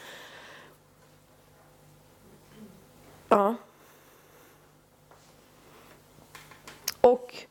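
A woman speaks briefly through a microphone, with long pauses.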